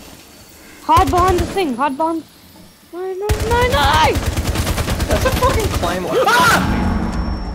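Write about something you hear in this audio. Rapid bursts of automatic gunfire ring out close by.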